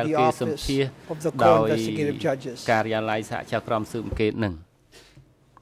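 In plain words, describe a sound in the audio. A middle-aged man speaks calmly into a microphone in a formal tone.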